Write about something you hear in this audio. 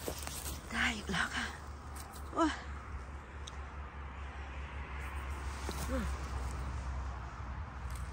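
Dry leaves and pine needles rustle as a mushroom is pulled from the ground.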